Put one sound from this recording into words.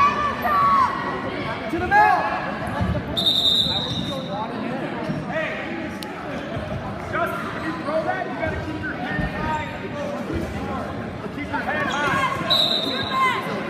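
Spectators shout and cheer in a large echoing gym.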